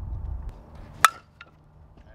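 A metal bat cracks sharply against a softball.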